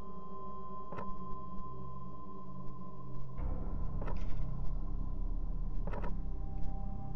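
Short interface clicks sound as menu selections change.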